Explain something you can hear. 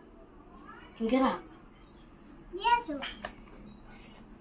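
Young children talk quietly close by.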